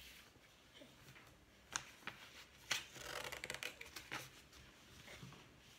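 Hands pat and slap wet paint onto paper close by.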